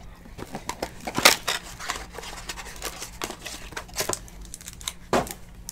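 Plastic wrapping crinkles and rustles as a pack is torn open.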